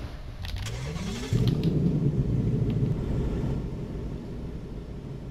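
A car engine starts and revs.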